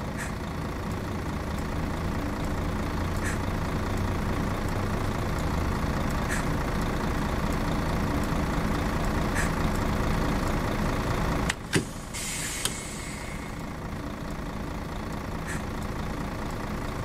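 A bus engine idles with a steady low rumble.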